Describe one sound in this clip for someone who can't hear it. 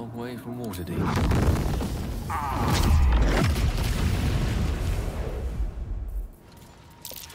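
A fiery spell bursts with a loud, roaring blast.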